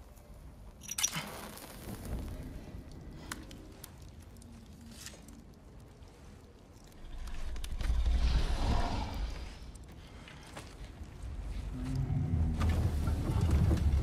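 A fire crackles close by.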